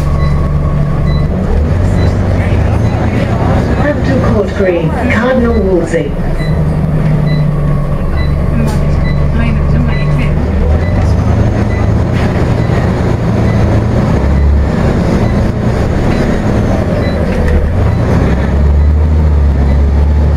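Bus tyres roll along the road with a rattling hum.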